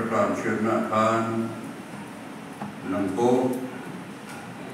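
A man speaks through a microphone and loudspeakers in an echoing hall.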